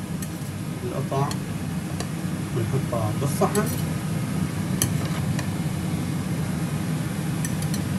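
Food sizzles on a hot grill.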